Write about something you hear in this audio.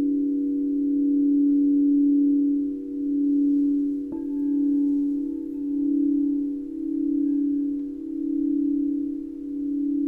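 Crystal singing bowls hum with a steady, pulsing ringing tone.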